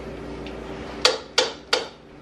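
A plastic blender lid knocks sharply three times as it is pressed into place.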